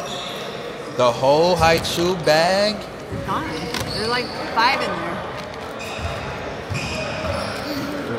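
A small child babbles and squeals.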